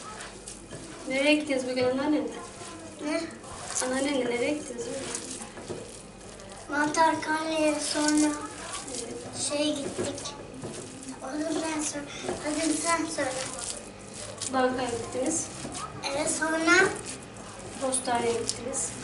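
A young boy talks with animation.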